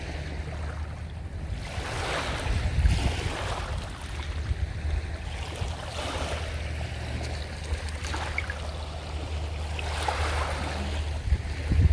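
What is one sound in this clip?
Small waves lap gently at the shore in soft, swelling washes.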